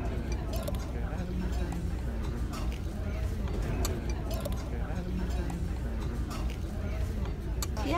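A fork scrapes against a ceramic dish.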